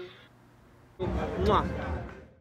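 A man talks close by.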